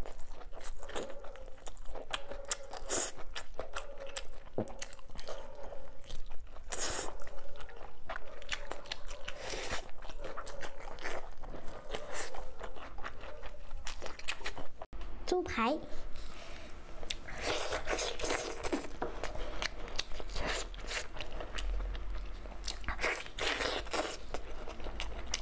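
A young woman chews sticky, saucy meat up close.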